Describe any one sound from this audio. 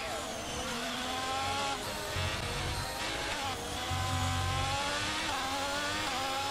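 A racing car engine revs up again as the car accelerates.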